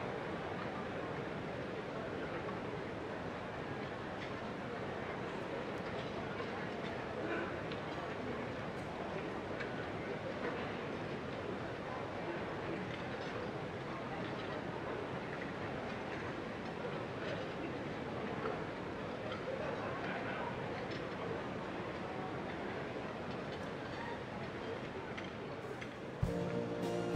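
An orchestra plays in a large echoing hall.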